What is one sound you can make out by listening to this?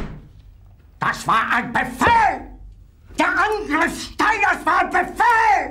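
An elderly man shouts angrily and loudly.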